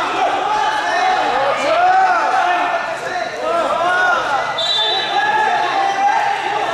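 Shoes squeak and shuffle on a wrestling mat.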